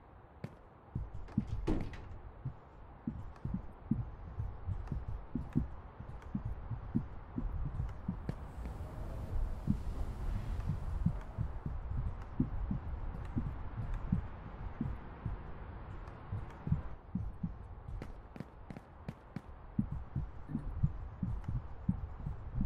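Footsteps thud on a hard floor at a quick pace.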